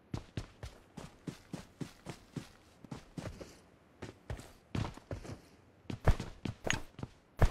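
Footsteps thud quickly and evenly on the ground.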